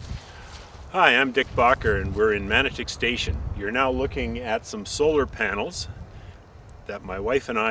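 A middle-aged man speaks calmly to the listener, close by, outdoors.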